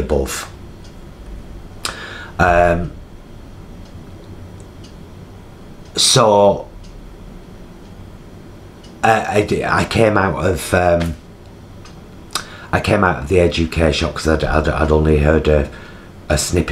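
A middle-aged man speaks close by, slowly and with pauses, in a thoughtful tone.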